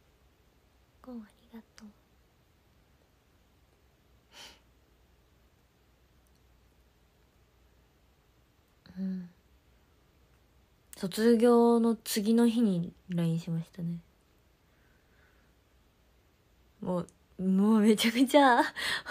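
A young woman speaks softly and close to a microphone, with long pauses.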